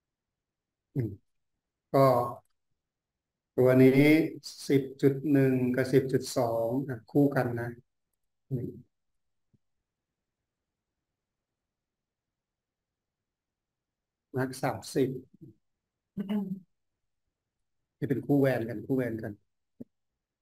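A man speaks calmly over an online call, in short bursts with pauses.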